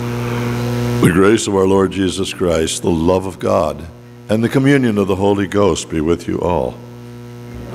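An elderly man speaks with feeling into a microphone in an echoing hall.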